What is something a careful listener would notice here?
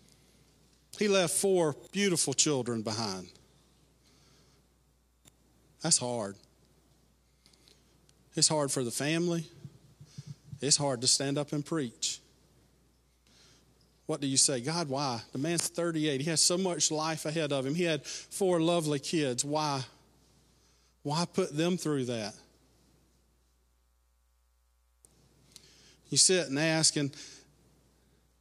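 A man speaks with animation through a microphone in a large room, pausing between phrases.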